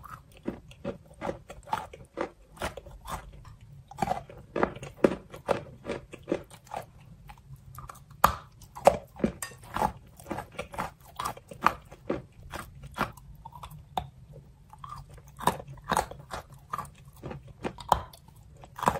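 A woman makes close, wet mouth sounds and smacks her lips into a microphone.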